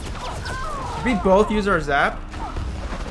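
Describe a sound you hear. A young man speaks with animation into a nearby microphone.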